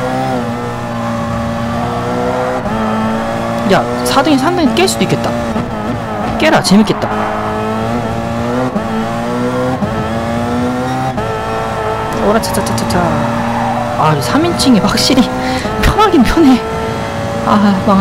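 A racing car engine revs high, its pitch climbing and dropping with each gear change.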